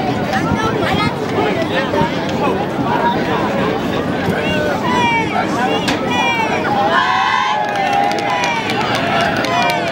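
A crowd of spectators chatters and cheers outdoors.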